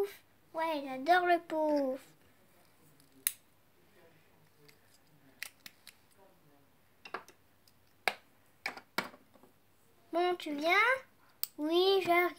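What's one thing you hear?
Small plastic toy figures tap and click against a hard surface.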